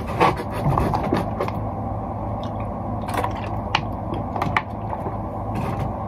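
A young man gulps water from a plastic bottle.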